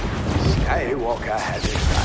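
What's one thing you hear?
A lightsaber hums and swings.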